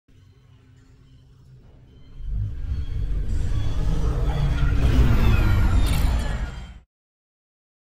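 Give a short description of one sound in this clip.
A hovering car's engine hums low and swells louder, then cuts off.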